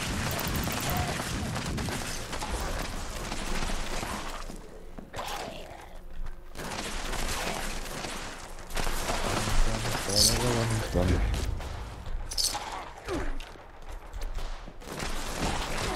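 Gunfire bursts out in short volleys.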